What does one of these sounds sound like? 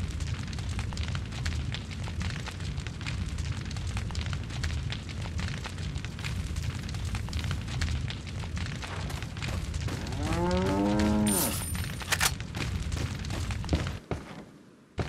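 Heavy rain pours down outdoors.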